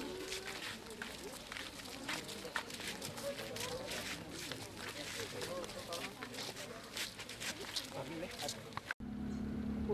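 A crowd of men and children talk and murmur nearby outdoors.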